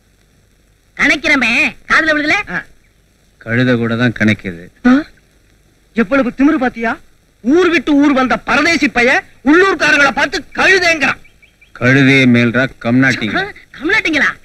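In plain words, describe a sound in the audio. A second man answers him.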